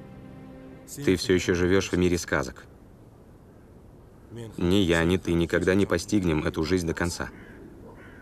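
A man speaks tensely up close.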